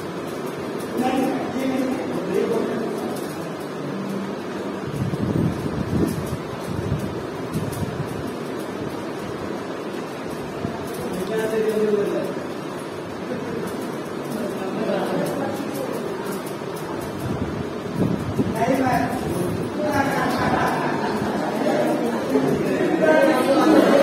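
A woman speaks to a group, a few steps away.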